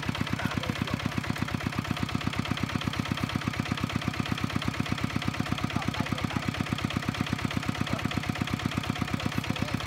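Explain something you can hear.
A small single-cylinder engine chugs steadily close by.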